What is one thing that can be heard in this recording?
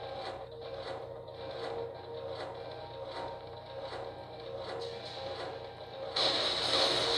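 Heavy metal footsteps thud in a steady rhythm.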